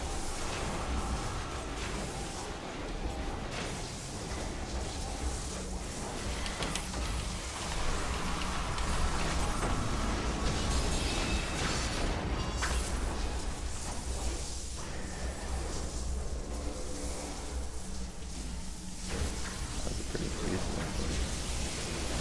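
Magic spells crackle and blast in a game battle.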